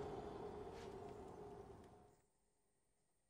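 Metal armour clanks as a knight moves.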